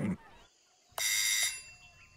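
A doorbell rings.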